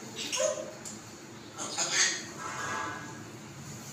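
A parrot squawks and whistles in short bursts close by.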